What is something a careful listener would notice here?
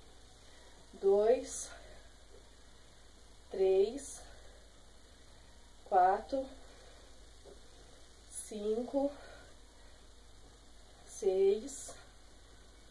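A young woman calls out short words one at a time, close by.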